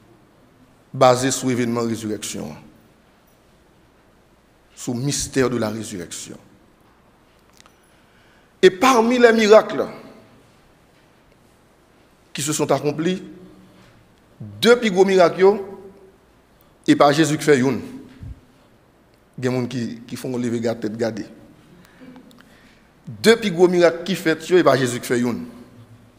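A man preaches with animation into a microphone, in short bursts with pauses, in an echoing hall.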